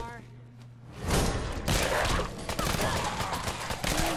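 Gunshots fire in quick, loud bursts close by.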